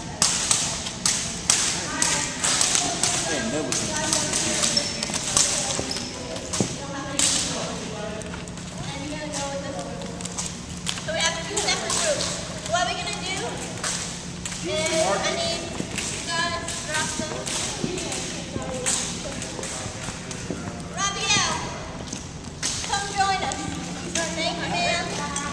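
Jump ropes slap rhythmically on a wooden floor in a large echoing hall.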